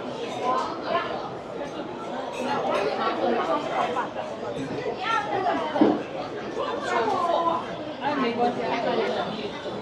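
Young women chat with each other close by.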